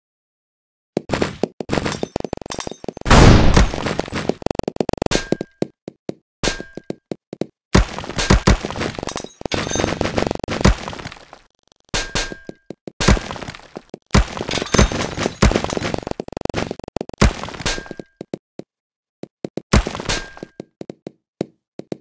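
Many small balls clatter and rattle rapidly.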